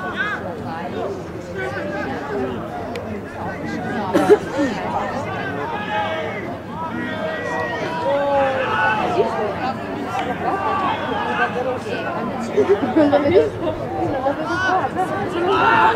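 Young men shout to each other outdoors on a field.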